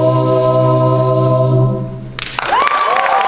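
A group of young men and women sing a held chord together into microphones.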